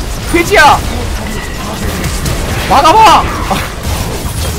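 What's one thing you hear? A young man exclaims loudly into a close microphone.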